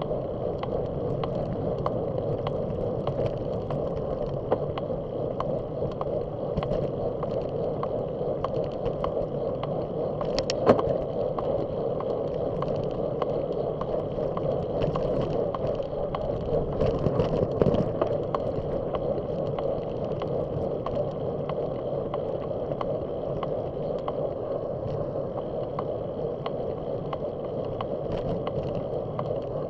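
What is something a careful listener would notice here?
Bicycle tyres roll over rough pavement with a low rumble.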